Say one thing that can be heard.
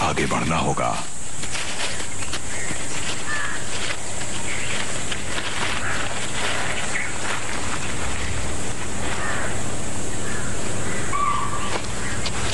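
Dry leaves crunch under a lioness's paws as it walks.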